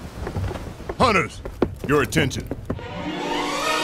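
A man calls out in a deep, commanding voice, close by.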